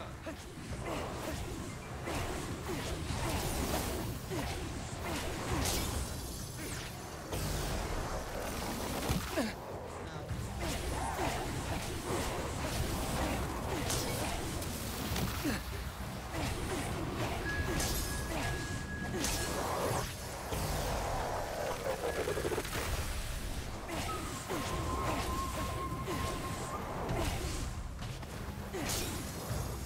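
Magic blasts crackle and burst in quick succession in a game.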